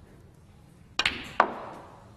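A cue sharply strikes a snooker ball.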